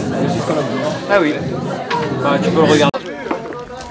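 People chatter and laugh around a table.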